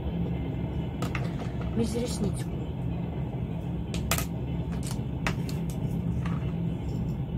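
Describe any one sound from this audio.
Small objects click and tap against a hard surface.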